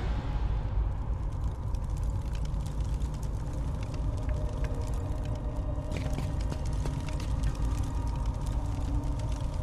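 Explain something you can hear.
Footsteps tap on a stone floor in a large echoing hall.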